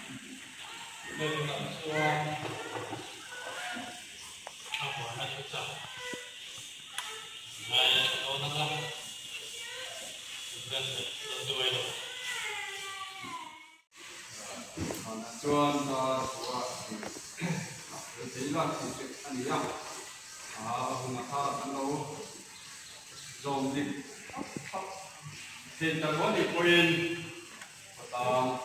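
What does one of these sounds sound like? A man speaks steadily into a microphone, heard through loudspeakers in an echoing hall.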